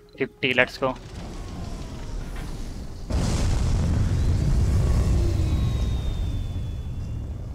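A rocket engine rumbles and then roars loudly as it lifts off.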